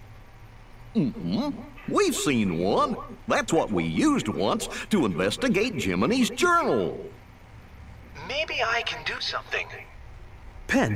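A man speaks with animation in a goofy, comical voice.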